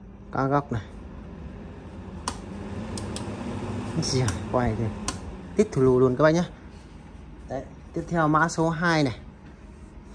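An electric fan whirs with a steady rush of air.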